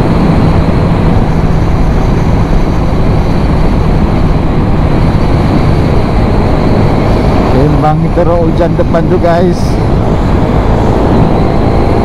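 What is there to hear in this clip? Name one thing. Wind roars loudly against a microphone.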